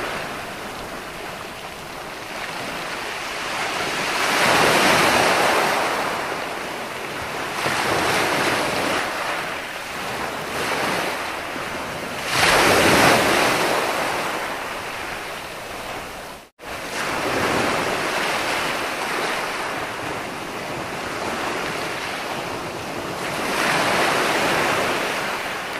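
Waves break and wash up onto a shore, rising and falling in repeated surges.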